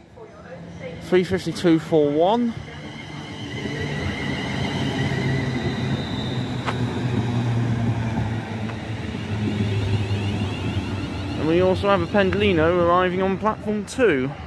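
A train rumbles past close by, wheels clattering on the rails.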